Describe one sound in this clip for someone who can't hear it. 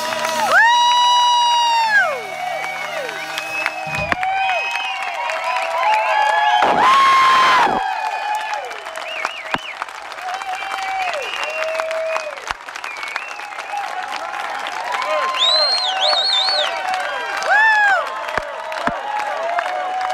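A band plays music on a stage outdoors.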